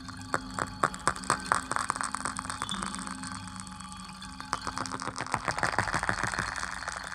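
A low electronic tone hums steadily.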